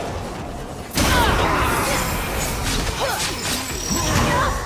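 Swords clash and slash in a loud fight.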